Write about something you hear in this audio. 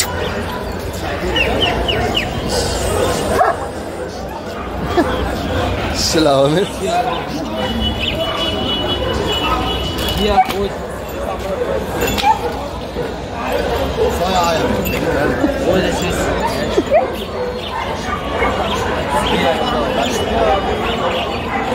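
Several men talk and chatter nearby outdoors.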